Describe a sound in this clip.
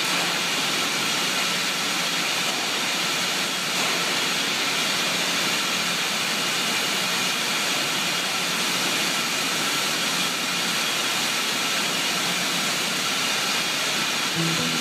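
Bottling machinery whirs and clatters steadily in a large echoing hall.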